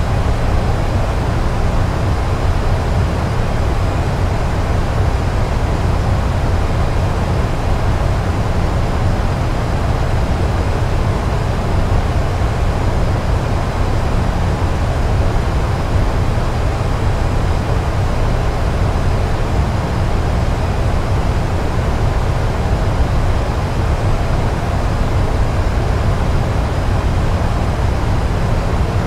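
Jet engines drone with a steady, deep roar.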